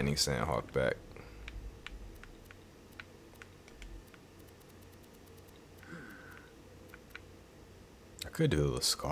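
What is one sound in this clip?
Menu selections click softly.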